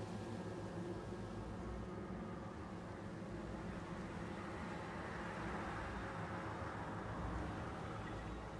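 A low, steady rumbling drone echoes through a cave.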